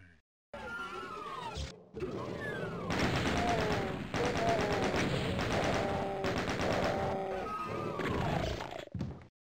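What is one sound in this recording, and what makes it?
Monsters growl and shriek in a video game.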